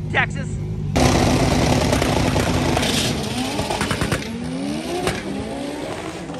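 A race car roars away down the track.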